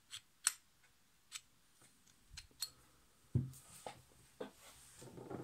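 Small metal parts click and clink as they are handled on a table.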